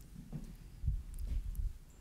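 Liquid pours from a small cup into a glass bowl.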